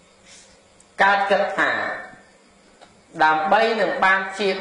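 A man speaks in a slow, drawn-out voice through a microphone.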